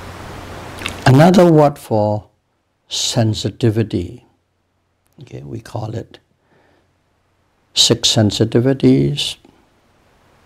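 An elderly man speaks calmly and slowly into a close microphone, with pauses between phrases.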